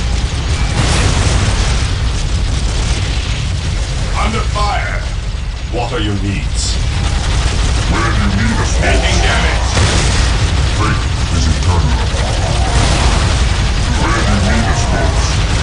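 Explosions boom with heavy low rumbling.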